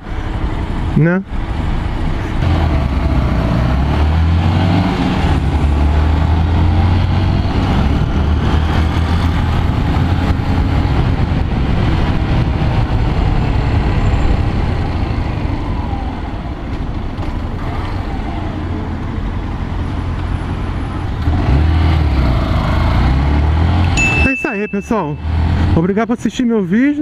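A motorcycle engine hums and revs steadily close by.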